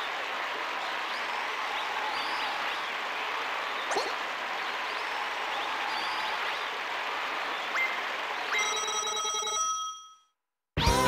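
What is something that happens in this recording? Waves wash steadily against a wooden pier.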